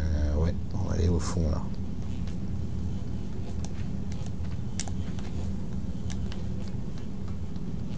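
Small footsteps patter softly on a hard floor.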